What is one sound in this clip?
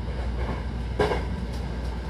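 Train wheels clatter over a rail joint.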